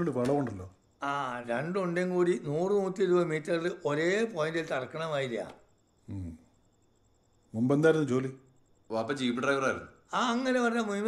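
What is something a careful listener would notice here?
An elderly man explains calmly, close by.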